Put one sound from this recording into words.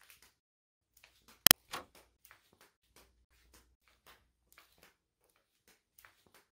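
Footsteps click on a hard floor, coming closer.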